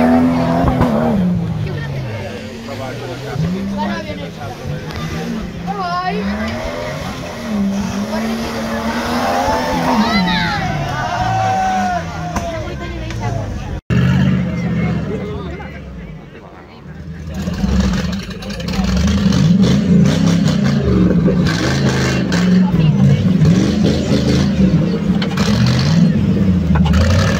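An engine revs hard, rising and falling.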